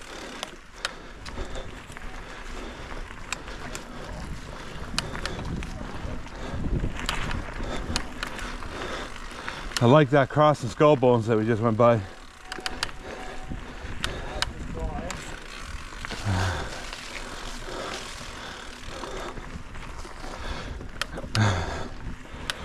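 Bicycle tyres crunch and roll over a dirt trail.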